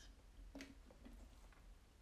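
A young woman sips through a straw.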